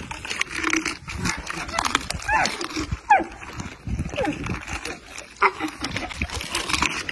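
A camel chews noisily up close.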